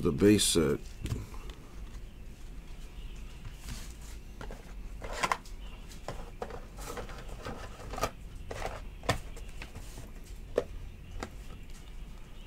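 Glossy trading cards rustle and click as they are flipped through by hand.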